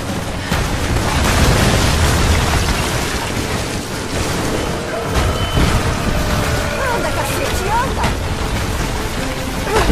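Water rushes and splashes nearby.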